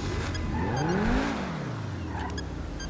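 A car engine revs briefly.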